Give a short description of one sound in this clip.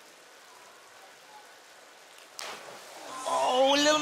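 A diver splashes into the water.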